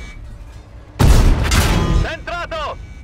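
A heavy cannon shell slams into the ground nearby with a loud boom.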